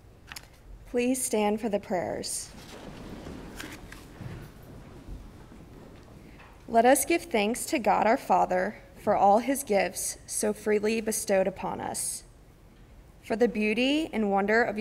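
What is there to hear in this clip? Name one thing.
A young woman reads aloud calmly through a microphone in a large echoing room.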